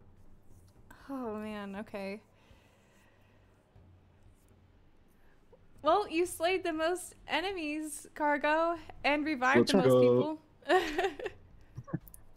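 A young woman speaks animatedly into a close microphone, in a high, playful voice.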